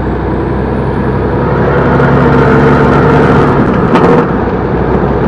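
A passing truck rushes by close alongside.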